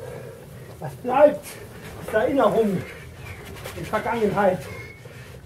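A woman speaks casually nearby.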